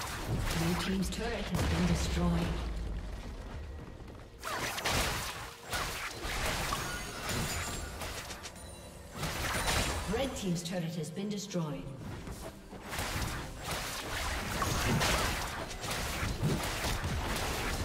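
Magic blasts crackle and whoosh in a fast fight.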